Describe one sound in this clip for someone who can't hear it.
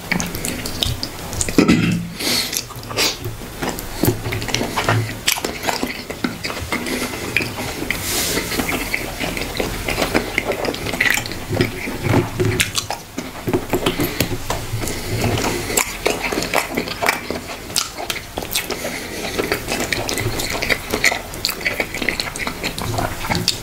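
A young man chews food noisily close to a microphone.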